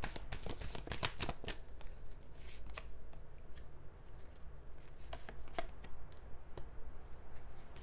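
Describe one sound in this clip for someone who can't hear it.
Playing cards riffle and slap softly as they are shuffled.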